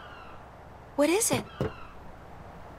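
A young woman speaks a short word softly.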